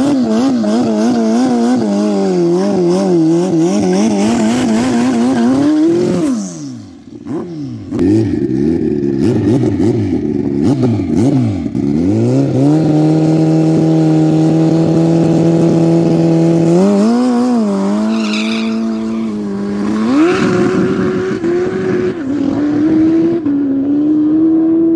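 A motorcycle engine revs loudly in fierce bursts.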